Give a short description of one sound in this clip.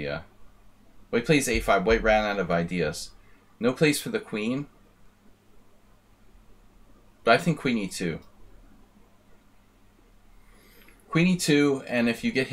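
A middle-aged man talks with animation into a close microphone, in short bursts with pauses.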